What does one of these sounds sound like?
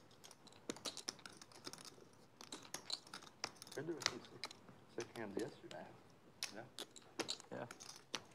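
Poker chips click and clatter against each other.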